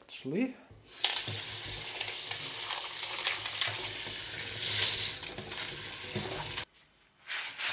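Tap water runs steadily into a plastic bowl in a metal sink.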